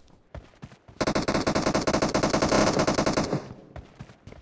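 A rifle fires in a rapid, rattling burst.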